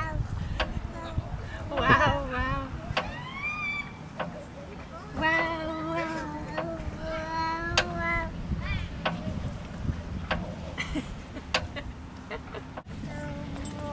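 A seesaw creaks as it rocks up and down.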